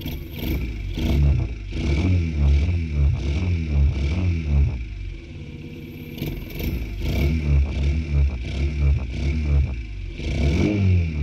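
A small motorcycle engine revs up and down repeatedly.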